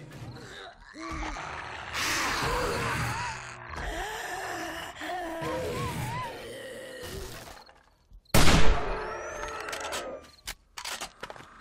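Zombies growl and groan nearby.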